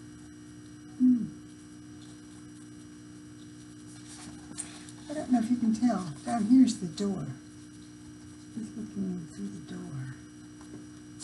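An older woman reads aloud calmly, close to a microphone.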